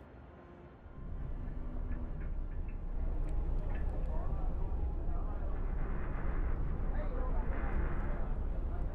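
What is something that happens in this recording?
Wind blows steadily over open snow.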